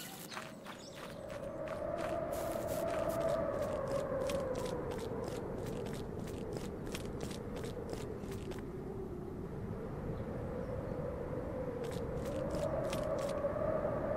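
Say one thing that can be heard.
Footsteps tap quickly and evenly on stone.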